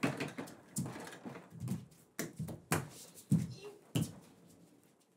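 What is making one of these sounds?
Thuds and knocks sound as a man kicks and throws things about.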